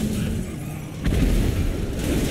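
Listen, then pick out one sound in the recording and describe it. A body slams onto asphalt.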